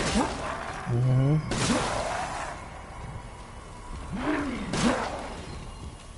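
A gun fires single loud shots that echo in a room.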